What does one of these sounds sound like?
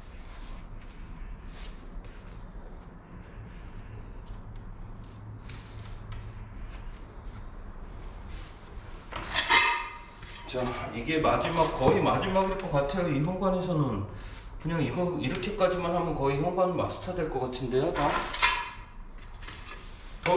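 Ceramic tiles scrape and tap softly as they are pressed into place on a floor.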